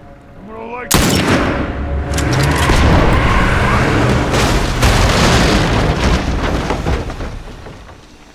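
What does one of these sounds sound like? A vehicle explodes with a heavy boom.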